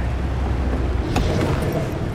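A car engine rumbles low.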